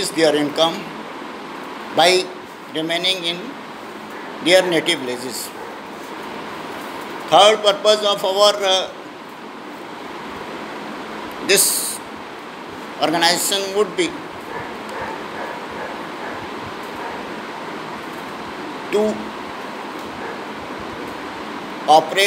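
An older man speaks calmly and close up, in short bursts with pauses.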